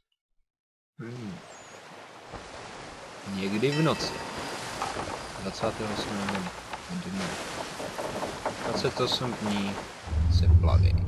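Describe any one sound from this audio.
Sea waves rush and splash against a sailing ship's hull.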